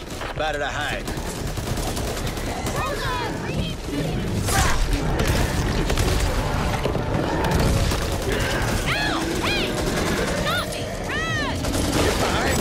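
Zombies screech and snarl close by.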